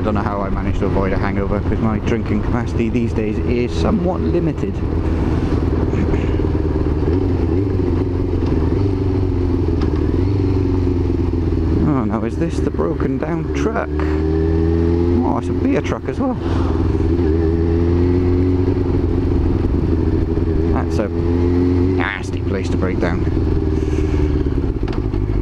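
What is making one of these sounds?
A motorcycle engine hums steadily and rises and falls in pitch as it changes gear.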